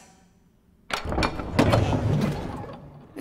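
A heavy door swings open with a low thud.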